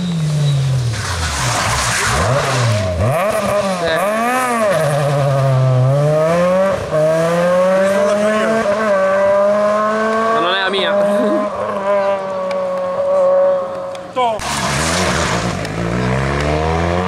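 Tyres skid and scrabble on tarmac.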